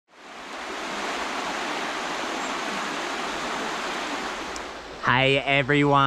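A shallow stream rushes and babbles over stones.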